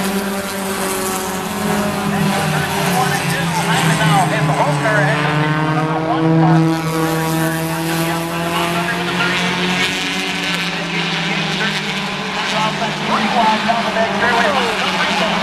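Race car engines roar steadily around a track.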